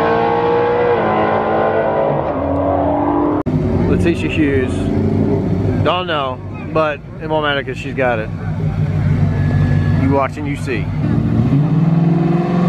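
A race car engine roars loudly at high revs.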